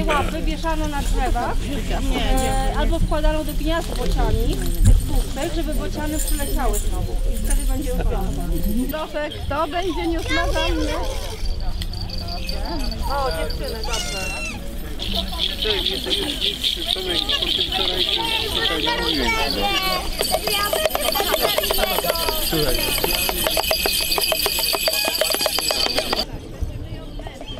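A crowd of adults and children chatter outdoors.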